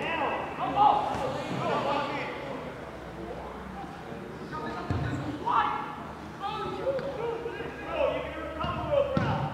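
Young men shout to each other outdoors on a playing field.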